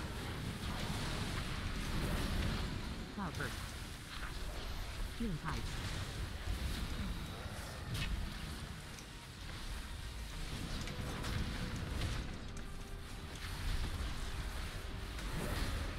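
A young man talks steadily into a close microphone.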